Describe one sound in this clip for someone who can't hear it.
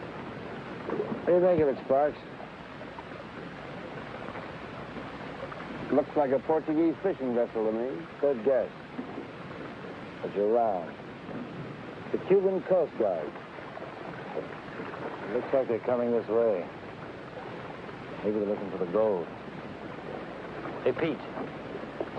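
A second man answers calmly close by.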